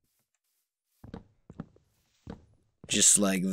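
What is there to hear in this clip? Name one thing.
Wooden blocks break with short, dull knocks.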